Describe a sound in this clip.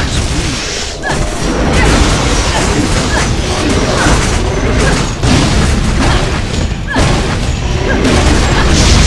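Magic blasts and crackles burst during a game battle.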